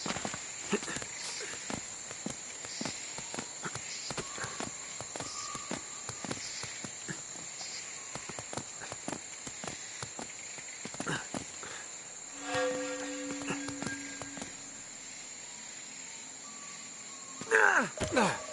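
Hands scrape and grip on stone ledges during a climb.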